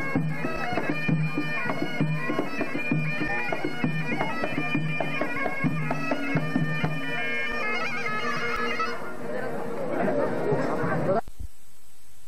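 Drums beat a steady rhythm.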